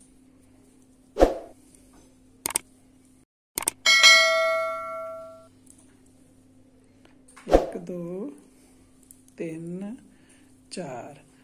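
Metal knitting needles click softly against each other.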